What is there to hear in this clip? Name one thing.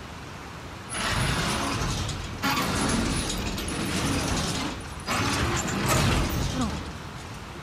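A metal rolling shutter rattles loudly as it is pushed up.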